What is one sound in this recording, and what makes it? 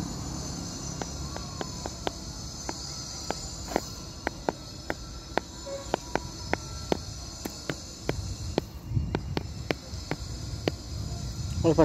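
A monkey cracks and chews food with sharp little clicks.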